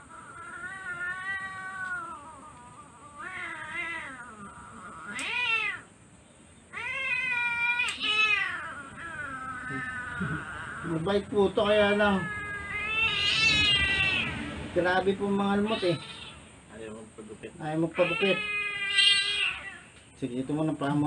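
A kitten meows loudly and repeatedly, close by.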